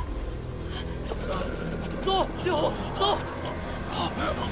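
A young man urges someone on, shouting.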